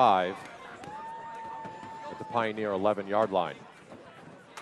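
Young spectators shout and cheer loudly close by.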